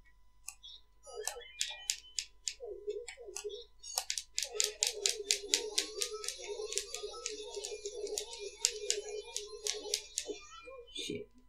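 A video game vacuum whirs and rattles as it sucks up a ghost.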